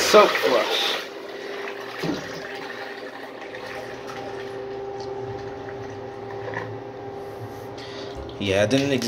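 A toilet flushes, with water swirling and draining noisily.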